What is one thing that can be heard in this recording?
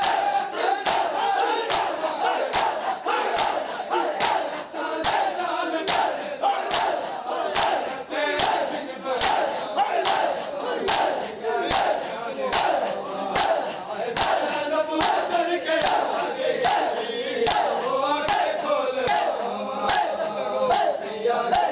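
Many men slap their chests in a steady, rhythmic beat.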